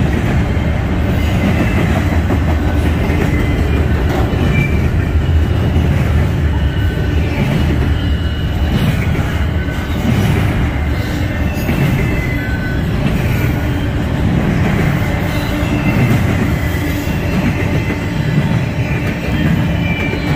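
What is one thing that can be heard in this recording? Steel wheels squeal and clatter over the track joints.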